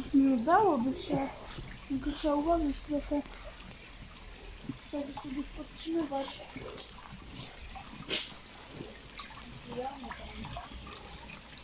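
Water trickles gently over stones.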